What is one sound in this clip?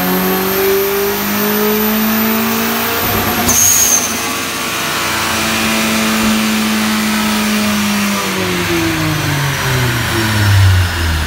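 A car engine runs loudly up close, its pitch rising and falling as it is revved.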